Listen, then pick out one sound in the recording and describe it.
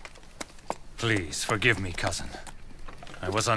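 A man speaks apologetically, close by.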